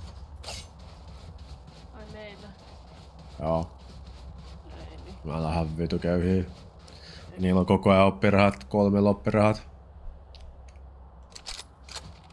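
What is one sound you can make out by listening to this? Footsteps crunch on packed snow.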